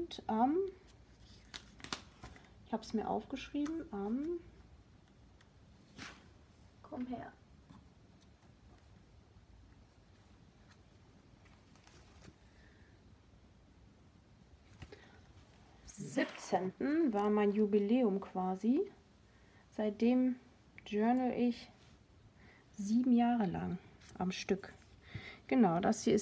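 A hand brushes and taps against paper pages.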